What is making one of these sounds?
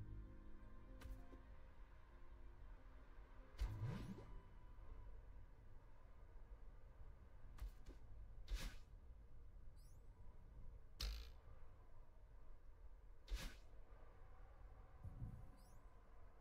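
Short whooshing game sound effects play again and again.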